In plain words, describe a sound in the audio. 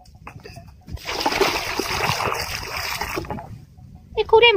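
Water pours from a bucket onto the ground.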